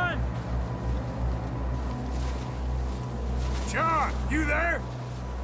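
Snow tumbles down a mountainside with a deep, steady rumble.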